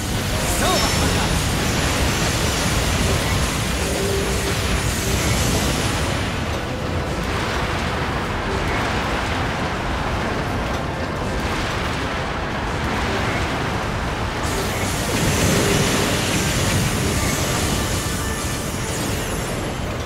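Laser beams zap and whoosh.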